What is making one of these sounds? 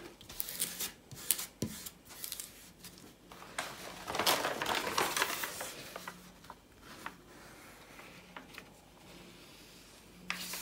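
Hands rub and slide across a sheet of paper.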